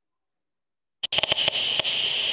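A handheld detector crackles with rapid, irregular clicks.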